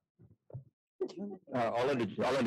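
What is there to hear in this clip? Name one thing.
A man answers in a loud, close voice near the microphone.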